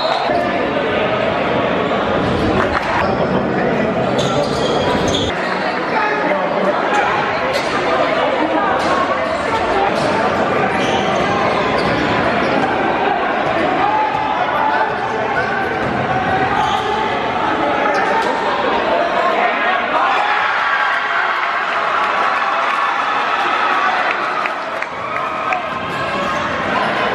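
A crowd cheers and chatters loudly in an echoing gym.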